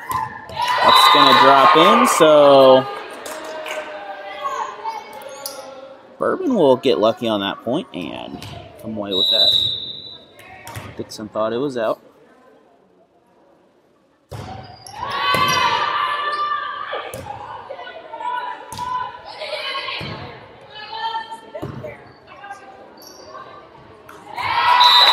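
A volleyball is hit with sharp smacks.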